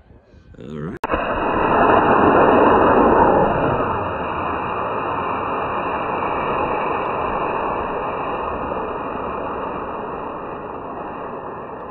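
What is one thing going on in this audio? A model rocket motor ignites with a sudden whoosh and roars steadily as the rocket climbs.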